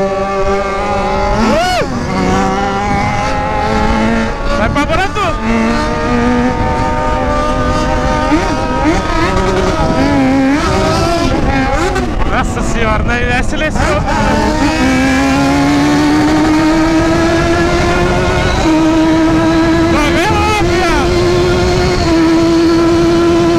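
A motorcycle engine roars and revs up and down close by, then rises steadily as it speeds up.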